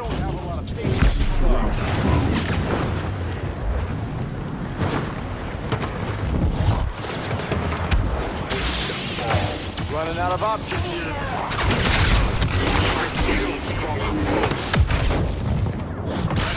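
Blaster shots fire rapidly.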